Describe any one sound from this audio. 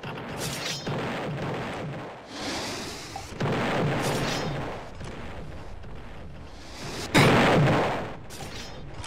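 A rocket launcher fires with a booming blast.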